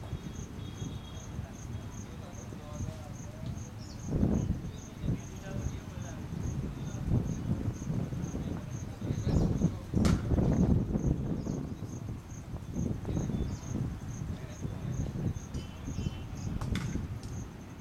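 Wind rumbles across an open outdoor field.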